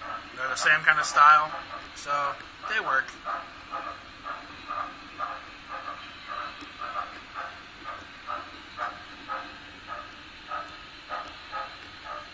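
Model freight cars click over the rail joints in a steady rhythm as a small train rolls past.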